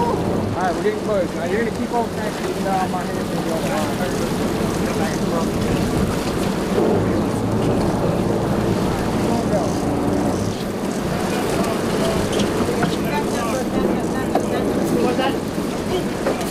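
Water splashes and churns against the side of a boat.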